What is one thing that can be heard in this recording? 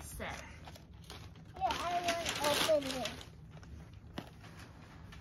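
A box rustles and scrapes as a young girl handles it.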